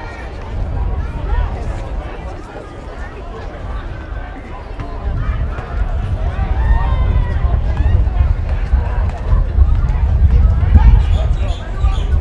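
Players call out to each other across an open field.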